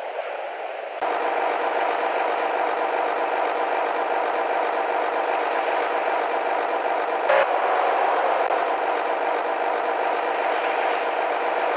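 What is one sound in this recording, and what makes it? A car engine idles steadily.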